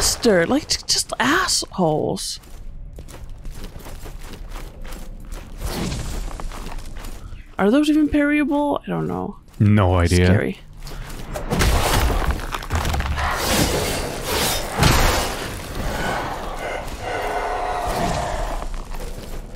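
Footsteps splash on wet stone.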